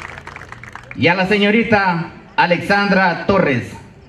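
A man speaks into a microphone over a loudspeaker outdoors, in a calm, deliberate voice.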